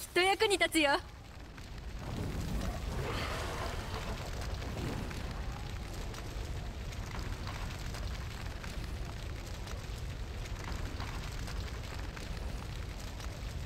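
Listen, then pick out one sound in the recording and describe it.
A forge fire roars steadily.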